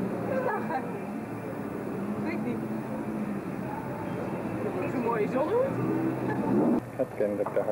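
A woman talks softly close by.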